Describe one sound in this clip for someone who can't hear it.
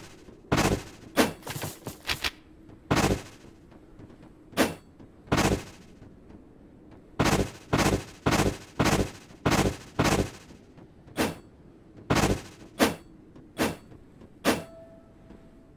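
Footsteps crunch heavily on sand at an uneven pace.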